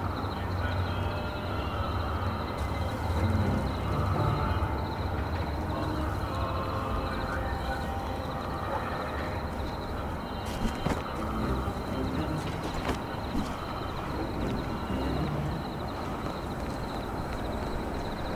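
Footsteps shuffle along a stone ledge.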